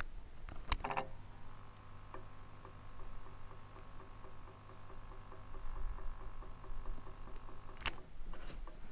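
A small pump hums steadily.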